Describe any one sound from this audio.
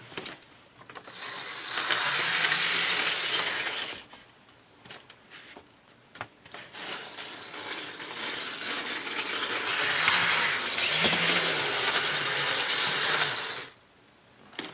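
A small toy train motor whirs steadily as the train runs around its track.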